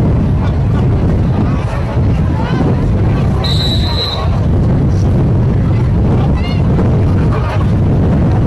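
Young men call out across an open field outdoors.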